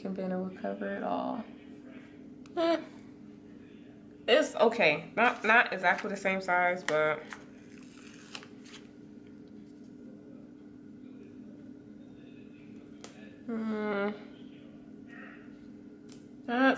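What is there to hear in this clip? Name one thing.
Paper crinkles and rustles softly as a sticker is pressed down by hand.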